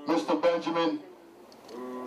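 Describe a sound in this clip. A man shouts loudly into a microphone.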